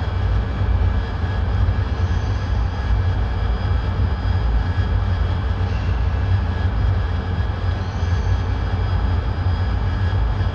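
A jet engine roars steadily from inside a cockpit.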